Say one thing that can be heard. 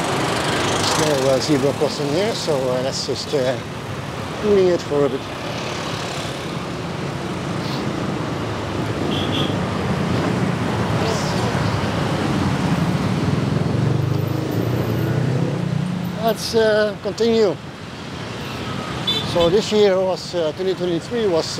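Motor scooters ride past close by.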